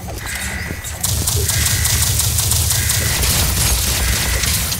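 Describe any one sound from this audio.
Rapid game gunfire rattles on.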